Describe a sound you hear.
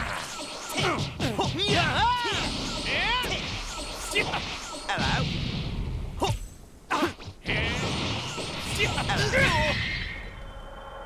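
Punches and kicks land with sharp, heavy impacts.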